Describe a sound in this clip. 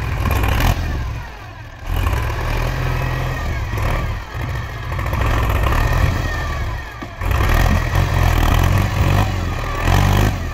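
A diesel tractor engine rumbles loudly nearby, rising and falling as it revs.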